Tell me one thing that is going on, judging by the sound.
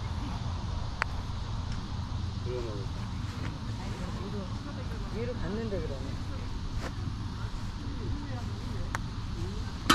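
A park golf club strikes a ball with a sharp knock.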